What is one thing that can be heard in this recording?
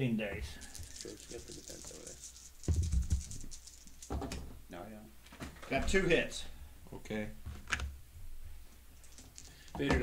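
Small plastic game pieces tap and slide on a tabletop board.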